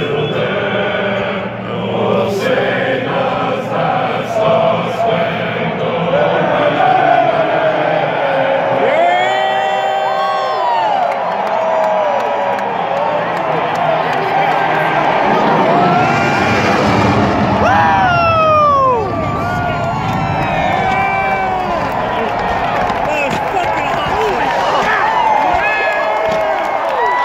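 A huge crowd cheers and roars in a large open stadium.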